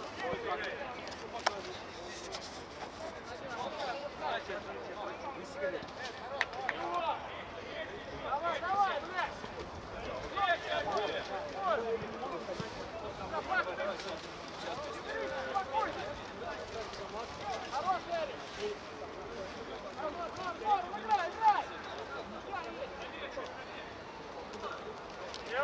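Men shout and call out to each other across an open outdoor field.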